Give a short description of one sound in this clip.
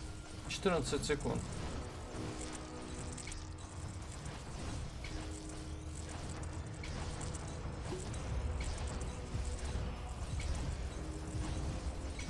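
Magic spells crackle and burst rapidly in a fantasy game battle.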